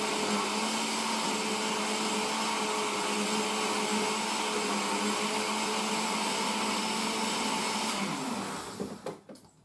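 A blender whirs loudly and steadily, then winds down.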